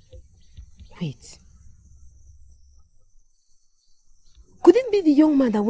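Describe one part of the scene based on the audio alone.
A young woman speaks angrily up close.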